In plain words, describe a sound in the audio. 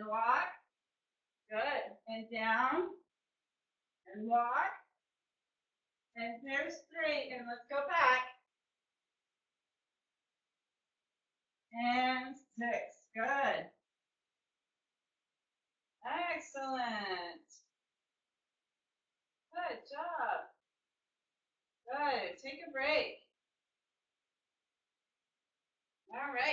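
A woman speaks calmly and clearly in short bursts, close to a microphone.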